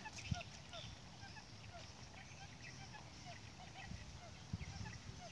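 A small loudspeaker plays quick, high chirping bird calls over and over.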